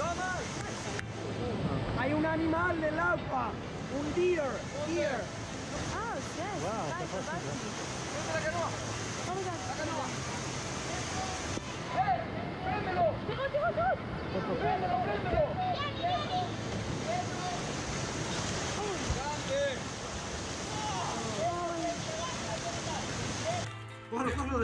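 Whitewater rapids rush and roar.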